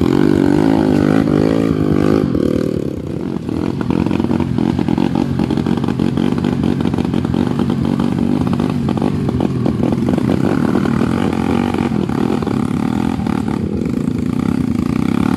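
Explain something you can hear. Dirt bike engines rev loudly and unevenly close by, rising and falling in pitch.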